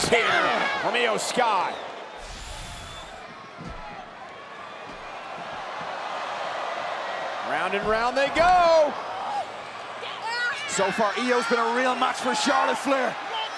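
A crowd cheers and roars in a large echoing arena.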